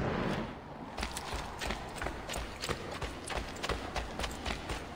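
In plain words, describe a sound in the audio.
Footsteps patter quickly on stone as a man runs.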